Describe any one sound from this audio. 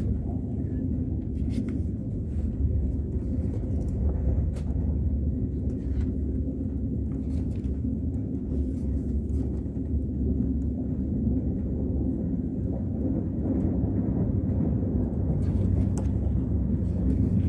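Paper rustles as pages are turned.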